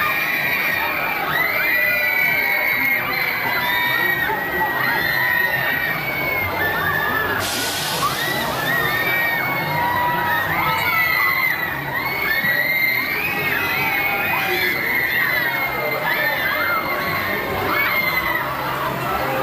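Crowds of riders scream loudly and continuously outdoors.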